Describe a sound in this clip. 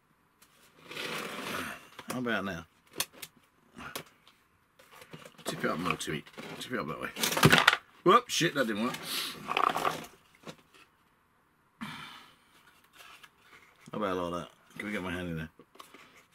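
Light model pieces tap and rustle as hands handle them.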